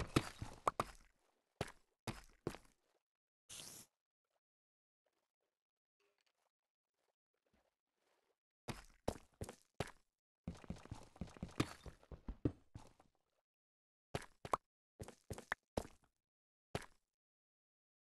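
A pickaxe digs and breaks stone blocks with quick scraping thuds.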